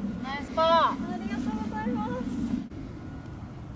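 A young woman calls out cheerfully nearby.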